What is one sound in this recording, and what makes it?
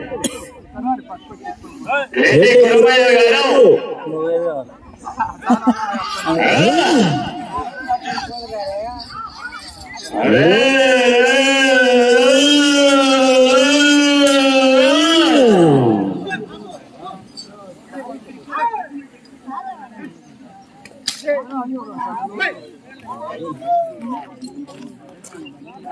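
A crowd of men chatter in the background.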